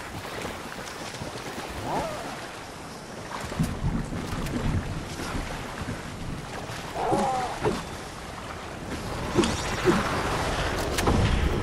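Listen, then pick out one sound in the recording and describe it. Water splashes as a large animal wades and runs through a river.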